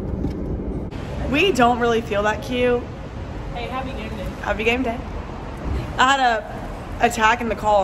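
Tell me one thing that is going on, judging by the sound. Several young women talk with animation in an echoing space.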